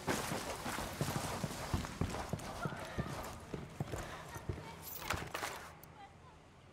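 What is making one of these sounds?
Heavy boots thud in quick footsteps on a hard floor.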